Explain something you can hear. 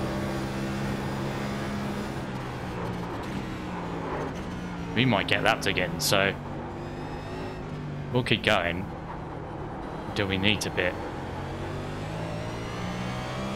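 A race car engine drones steadily, rising and falling with the throttle.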